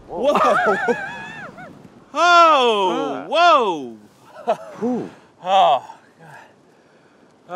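A middle-aged man speaks nearby with animation.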